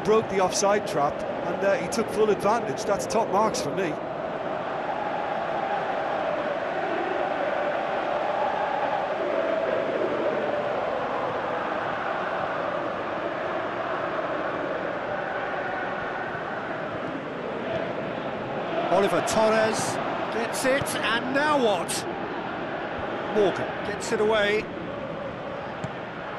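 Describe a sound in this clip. A large crowd roars and cheers in a stadium.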